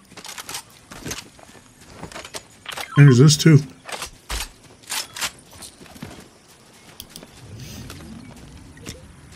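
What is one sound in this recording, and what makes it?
Short game sound effects click and chime repeatedly.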